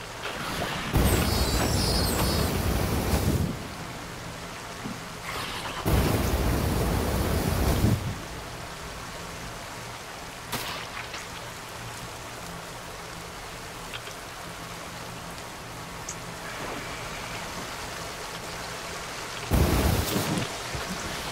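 A flamethrower roars in short, loud bursts.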